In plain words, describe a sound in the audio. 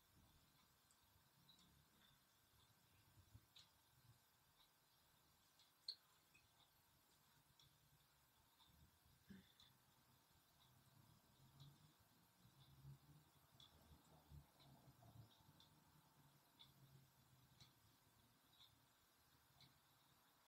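A woman breathes softly and slowly close by.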